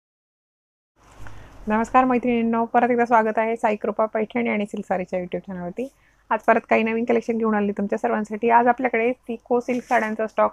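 A woman speaks calmly and warmly into a close microphone.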